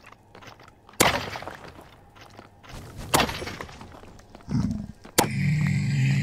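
A sword swishes and strikes hard.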